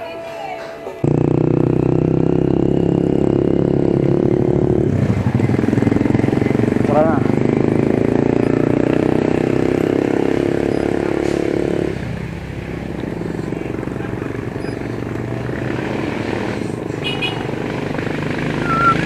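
Bicycle tyres roll along a paved road.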